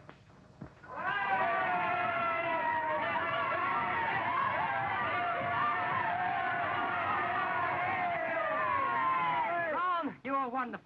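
A group of young men sing together loudly, echoing.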